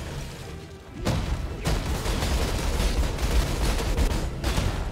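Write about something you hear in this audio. Spells crackle and burst in quick succession.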